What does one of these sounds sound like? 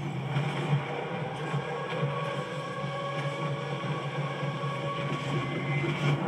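Gunfire and effects from a video game play through a television speaker, heard in a room.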